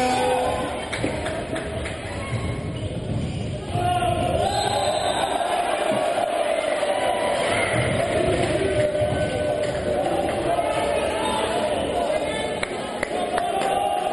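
A ball bounces on a wooden floor.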